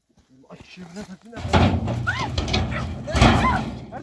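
A metal barrel clangs as it topples onto stony ground.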